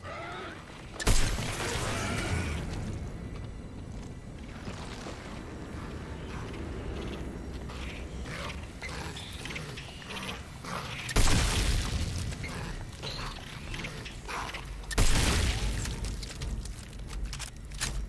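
Gunfire cracks in loud bursts, echoing down a corridor.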